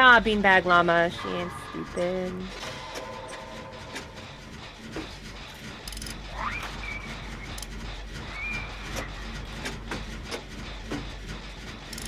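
A generator engine rattles and clanks with metallic knocks.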